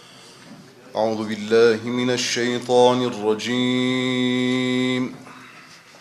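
A man chants melodiously into a microphone, heard up close.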